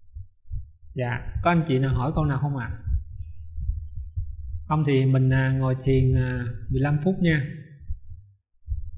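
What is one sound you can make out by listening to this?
A man speaks slowly and calmly.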